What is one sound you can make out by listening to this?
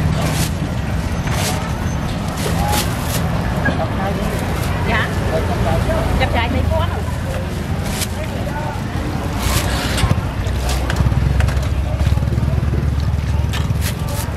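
A plastic bag crinkles.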